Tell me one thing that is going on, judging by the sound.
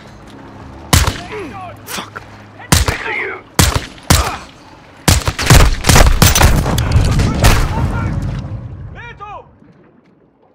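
Gunshots crack in rapid bursts nearby.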